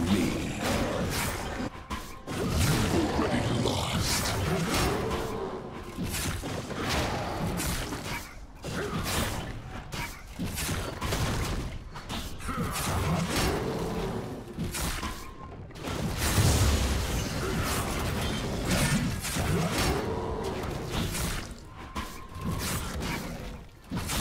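Weapons clash and spells burst in a fast fight.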